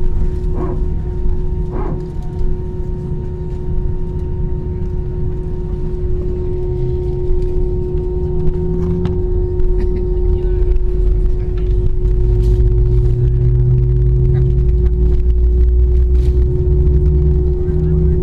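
Jet engines hum and whine steadily inside an airliner cabin, growing louder.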